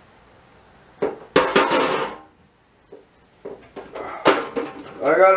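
Dishes and bottles clink and knock at a sink.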